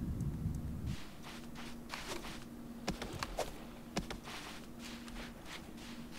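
Light footsteps patter on sand.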